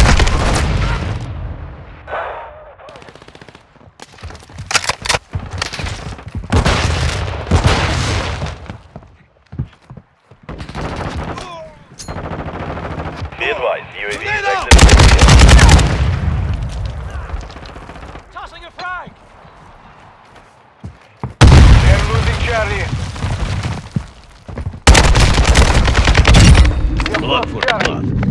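Gunfire and explosions crack and boom in a game.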